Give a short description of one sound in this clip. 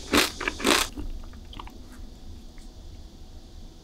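A chocolate bar with nuts snaps in two.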